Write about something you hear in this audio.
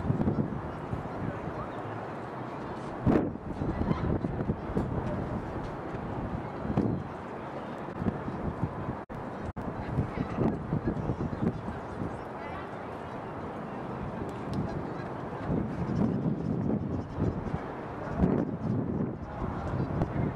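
Young women call out faintly across an open field.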